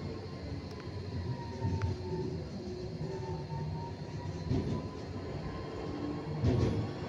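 A tram's motor hums with a gliding whine.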